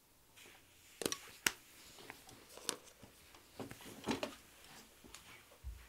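Footsteps walk away across a floor.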